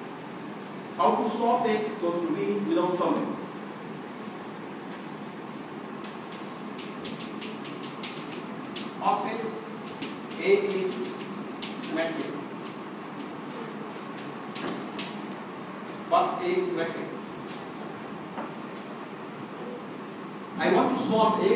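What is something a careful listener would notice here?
A middle-aged man lectures in a room with a slight echo, speaking in short bursts.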